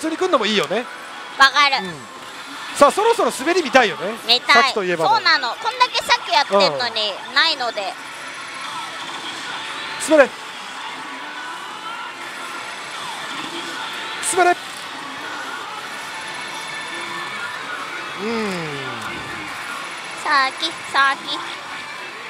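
A slot machine plays bursts of loud electronic jingles and swooping effects close by.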